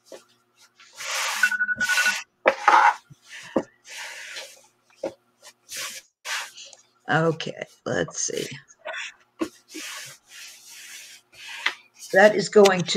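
Cloth rustles as hands fold it.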